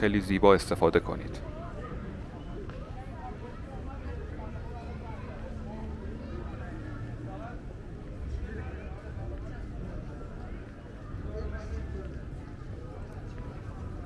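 People chat quietly in the distance outdoors.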